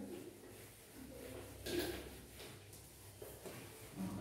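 A duster wipes across a whiteboard.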